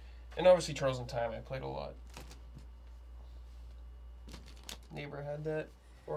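Plastic parts rustle and click as they are handled.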